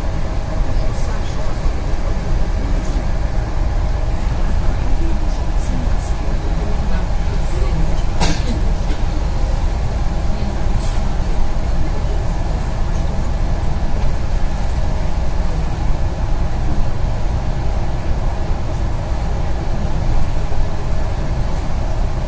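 Tyres hum on a wet road.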